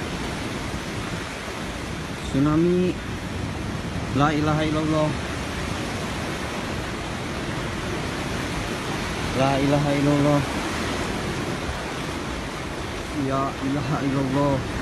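Floodwater rushes loudly down a street outdoors.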